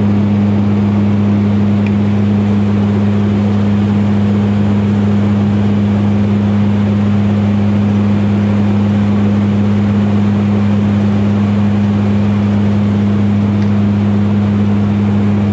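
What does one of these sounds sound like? Aircraft engines drone with a steady low hum inside the cabin.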